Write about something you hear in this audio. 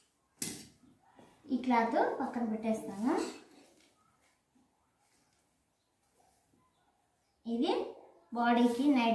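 Cloth rustles as it is folded and spread out.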